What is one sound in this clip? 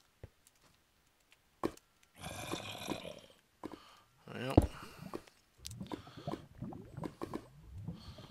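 Lava bubbles and pops softly.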